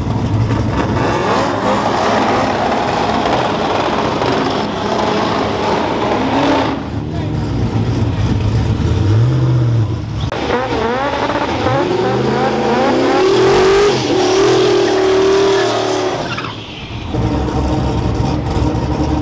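A car engine idles with a deep, loud rumble.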